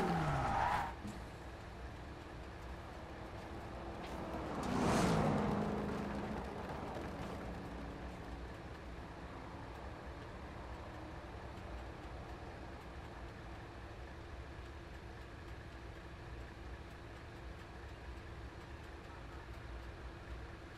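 A car engine idles with a low, quiet hum.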